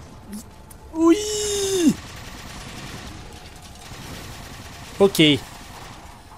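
A vehicle engine hums and whines.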